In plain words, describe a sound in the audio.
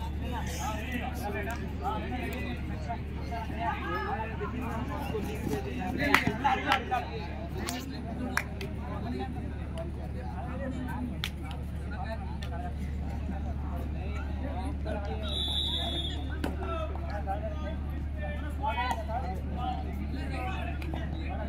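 A crowd murmurs and chatters outdoors.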